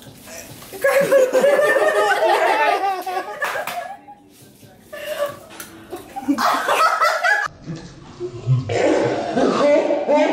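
A young woman laughs and shrieks loudly close by.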